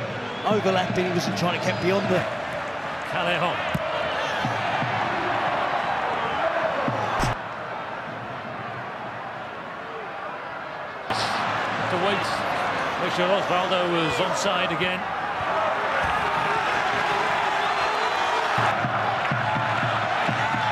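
A large stadium crowd roars and chants outdoors.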